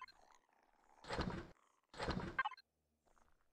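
A short whoosh sounds twice.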